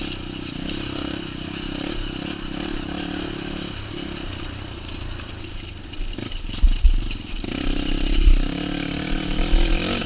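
A motorcycle engine hums and revs steadily close by.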